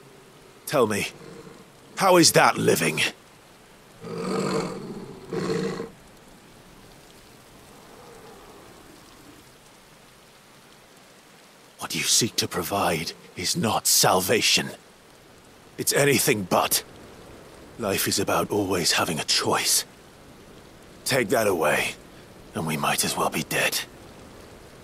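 A man speaks in a low, intense voice.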